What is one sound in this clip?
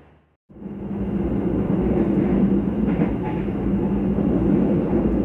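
A train carriage rumbles and hums steadily as the train rolls along.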